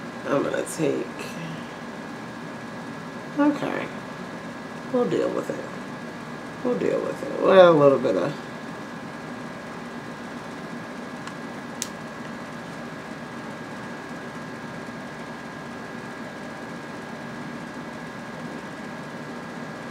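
A makeup brush brushes softly over skin.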